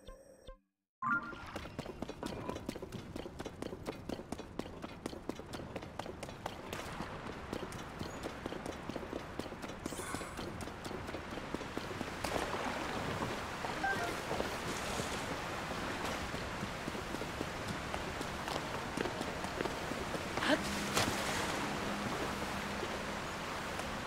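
Quick footsteps run over rough ground.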